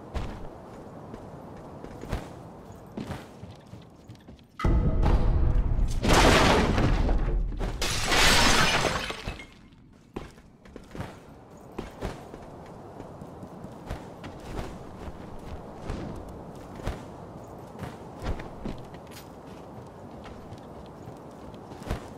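Quick footsteps patter across wooden boards and roof tiles.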